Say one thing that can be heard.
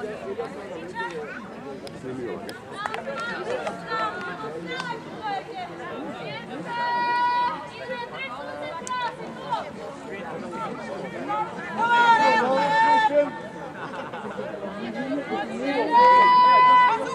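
Adult spectators nearby talk and call out.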